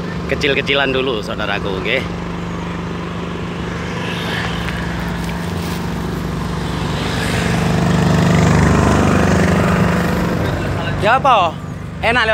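A vehicle engine rumbles steadily nearby.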